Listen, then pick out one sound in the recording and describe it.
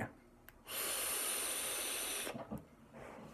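A young man draws hard on a vape, which hisses and crackles.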